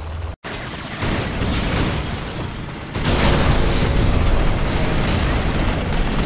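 Cannons fire and shells explode in a battle.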